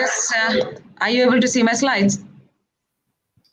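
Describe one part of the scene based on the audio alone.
A woman speaks brightly over an online call.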